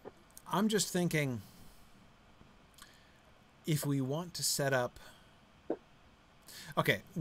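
A middle-aged man speaks calmly in short phrases through an online call.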